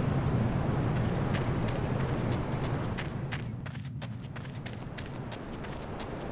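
Footsteps run on the ground.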